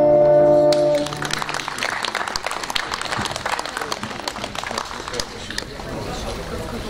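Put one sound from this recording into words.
A small lute-like string instrument plucks a quick melody through loudspeakers.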